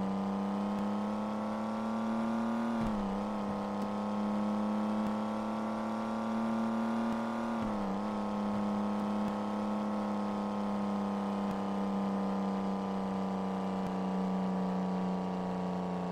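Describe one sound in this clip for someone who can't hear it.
A car engine hums steadily, dipping briefly in pitch now and then.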